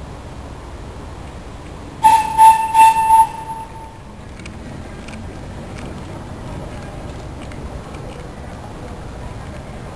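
A steam engine on a canal boat chugs softly.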